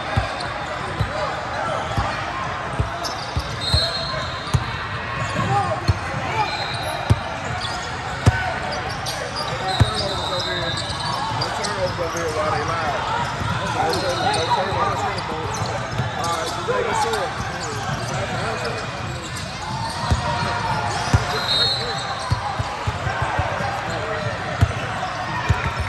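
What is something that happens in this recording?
Basketballs bounce on a wooden floor in a large echoing hall.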